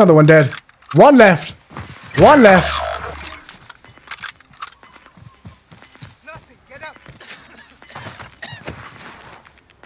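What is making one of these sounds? A young man speaks loudly and with animation into a close microphone.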